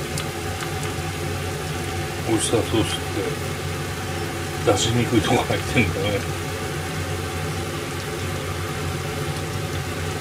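Sauce pours from a bottle into a pan.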